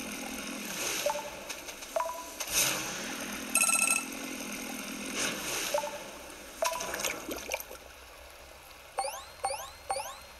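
Bright electronic chimes ring out in short bursts.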